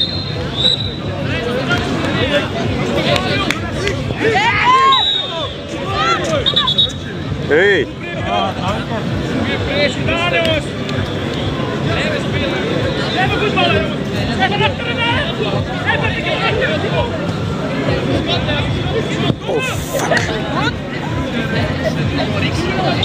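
A crowd of spectators chatters in the distance.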